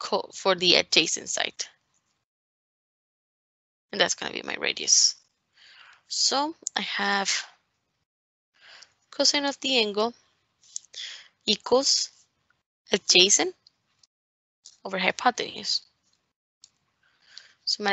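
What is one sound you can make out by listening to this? A woman speaks calmly into a close microphone, pausing between phrases.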